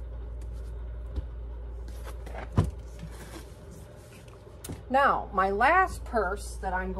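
Cloth rustles as it is folded and rubbed by hand.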